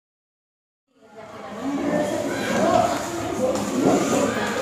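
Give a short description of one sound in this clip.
Children chatter and talk in a noisy room.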